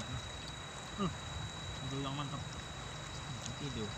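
A young man talks briefly and calmly, close by.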